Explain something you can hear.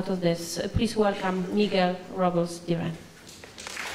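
A woman speaks calmly through a microphone in a large hall.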